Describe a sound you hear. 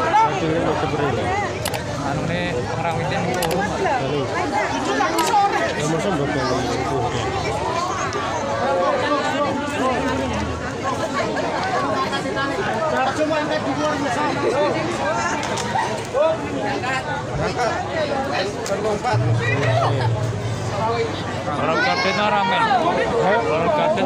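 A crowd of men and women talk and shout loudly outdoors.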